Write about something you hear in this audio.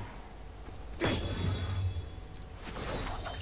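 A blade swishes sharply through the air.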